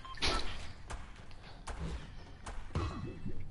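Footsteps knock on wooden planks.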